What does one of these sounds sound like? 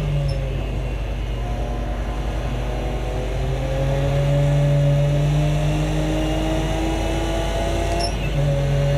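A race car engine roars steadily, its pitch climbing as the car speeds up and dropping briefly at a gear change.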